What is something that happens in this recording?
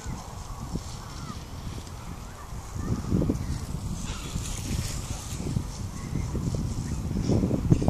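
A bicycle rolls past on a gravel path.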